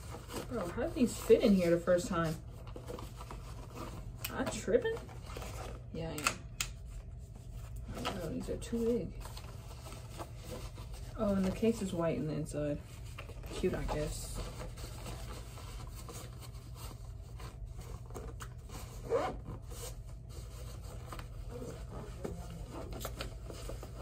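Headphones click and rustle as a young woman handles them.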